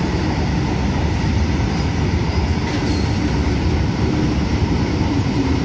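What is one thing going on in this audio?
A freight train rumbles and clanks past nearby.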